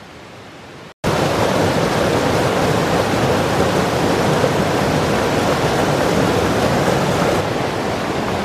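A stream rushes and splashes over rocks close by.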